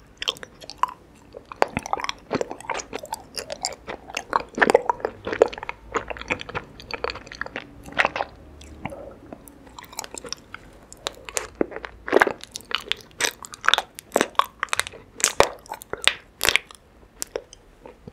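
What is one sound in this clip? Honeycomb crunches and squishes close to a microphone.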